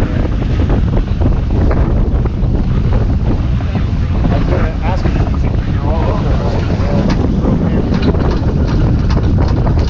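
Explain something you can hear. Water rushes and splashes along the hull of a sailboat.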